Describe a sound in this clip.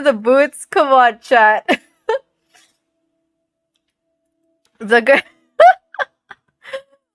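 A second young woman laughs over an online call.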